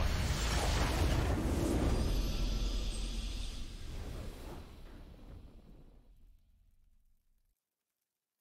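A triumphant game victory fanfare swells and then fades away.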